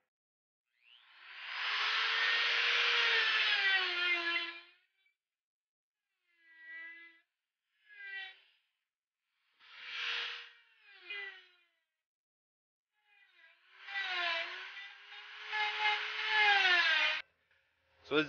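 A small rotary tool whines as it grinds into wood.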